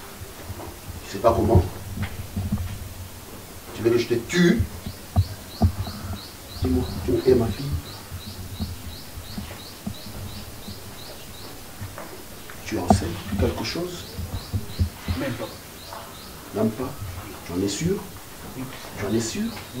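A man speaks sternly and with animation, close by.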